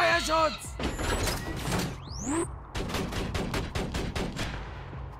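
A gun fires in rapid bursts of shots.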